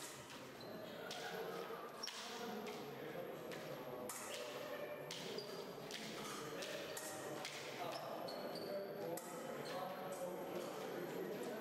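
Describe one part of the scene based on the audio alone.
Fencers' feet stamp and shuffle on the floor.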